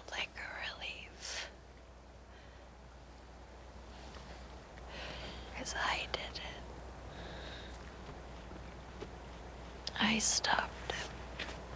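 A young woman gasps and breathes heavily up close.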